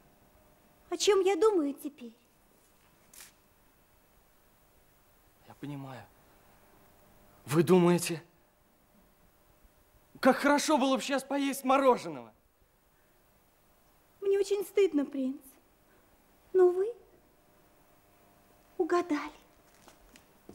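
A young woman answers calmly, close by.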